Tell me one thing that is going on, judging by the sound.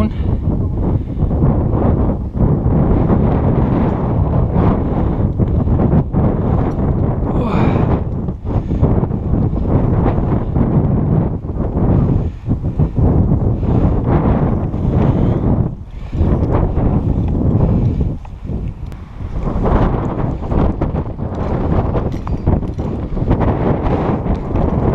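Strong wind roars and buffets against a microphone outdoors.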